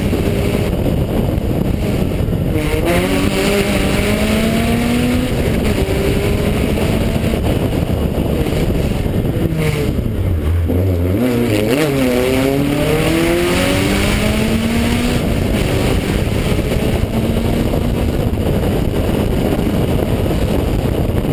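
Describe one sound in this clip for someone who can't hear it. A car engine roars loudly and revs up and down.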